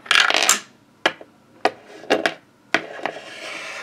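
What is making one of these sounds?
A small plastic toy taps against a hard plastic surface.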